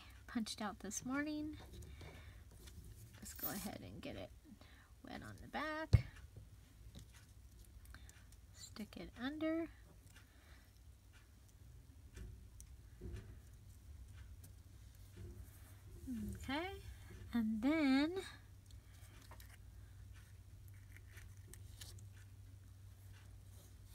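Paper rustles softly as hands handle it.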